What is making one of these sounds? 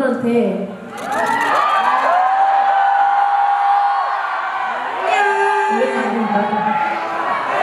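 Young women sing long notes together through microphones.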